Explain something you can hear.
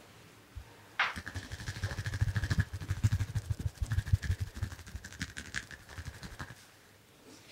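Fingers rub and tap rapidly on a man's head and hair.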